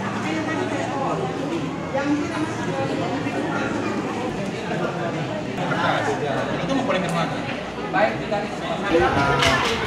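A crowd murmurs indoors.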